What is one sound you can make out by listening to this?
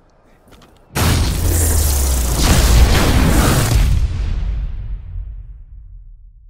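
A loud roaring burst of energy rushes in and slowly fades.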